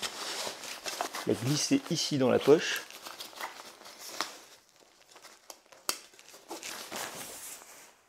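A bag's fabric rustles and crinkles as things are packed into it.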